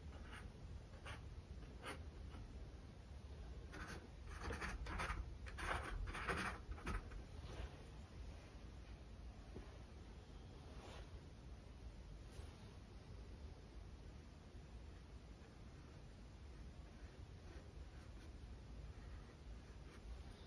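A brush dabs and taps softly on canvas.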